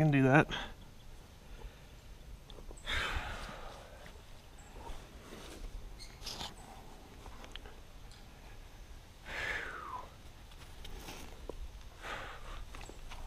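Hands scrape and grip on rough rock close by.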